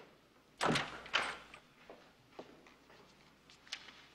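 A door latch clicks and a wooden door swings open.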